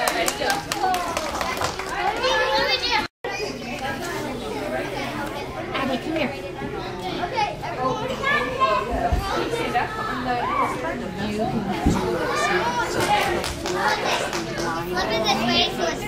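A woman speaks encouragingly to a child.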